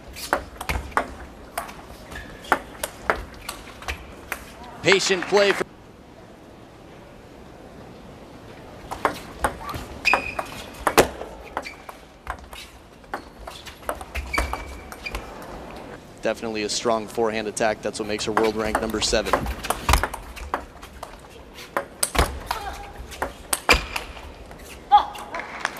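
A table tennis ball clicks back and forth, bouncing on a table and hit by paddles.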